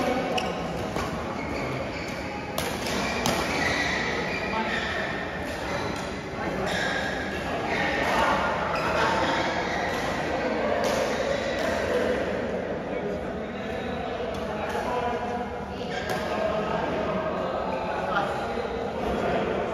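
Men talk to each other nearby.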